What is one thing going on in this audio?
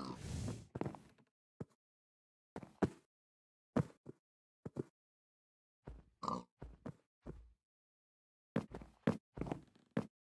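A pig grunts in short bursts.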